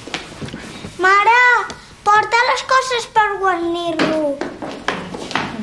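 A child calls out in a high, sing-song voice.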